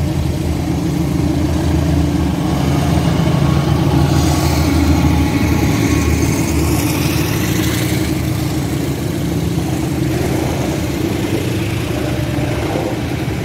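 Train wheels clatter and rumble over the rails.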